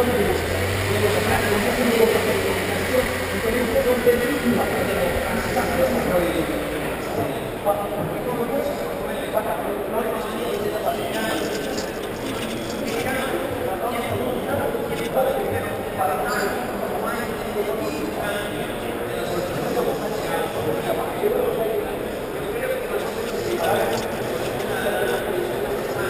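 A large crowd murmurs and chatters indoors, echoing in a big hall.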